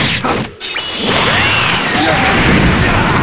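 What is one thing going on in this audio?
An energy blast bursts with a loud roaring whoosh.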